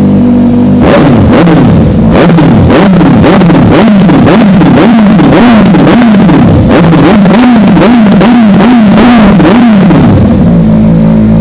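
A motorcycle engine revs hard, over and over, close by.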